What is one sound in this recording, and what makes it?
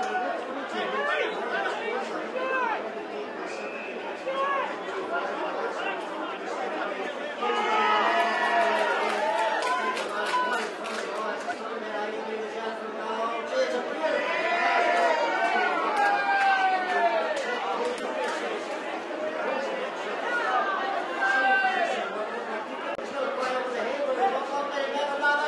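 A large outdoor crowd cheers and shouts, swelling in waves.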